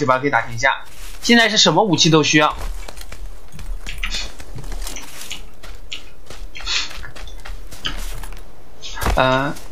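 Footsteps run quickly over dirt and wooden boards.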